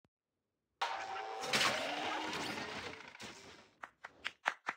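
A magical shimmering sound swells and fades.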